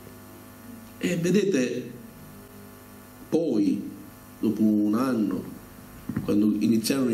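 A middle-aged man speaks with animation into a microphone, heard through loudspeakers in an echoing hall.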